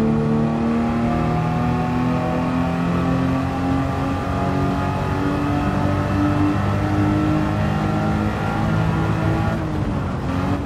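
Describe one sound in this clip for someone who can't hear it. A racing car engine roars loudly at high revs, its pitch rising as it speeds up.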